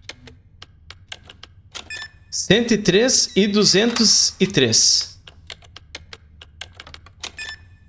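Keypad buttons beep softly as they are pressed.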